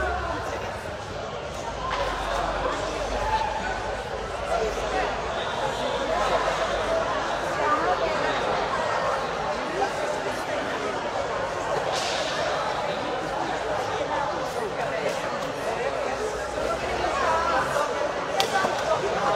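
Adult men and women chat in a large echoing hall.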